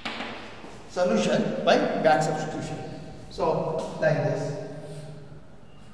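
An elderly man speaks calmly, as if lecturing, close to a microphone.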